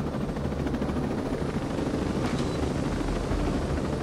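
A helicopter's skids scrape onto the ground as it lands.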